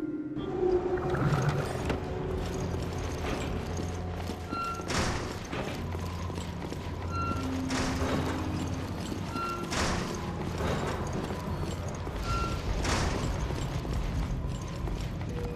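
Footsteps tread on a hard metal floor.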